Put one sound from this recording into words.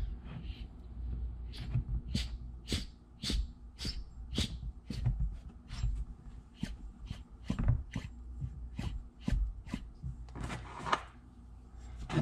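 A pulley clicks steadily as it is turned by hand.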